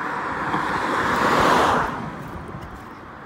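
A car passes close by and fades away.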